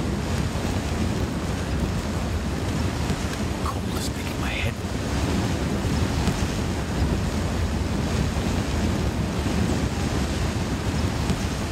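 A fire crackles and hisses close by.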